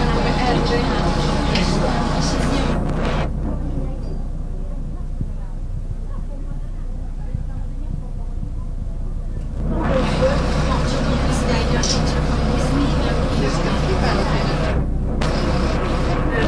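A crowd of men and women talk and murmur nearby.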